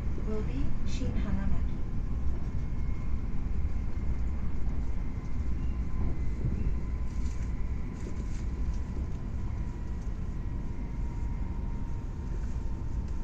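A train rumbles steadily along the tracks at speed.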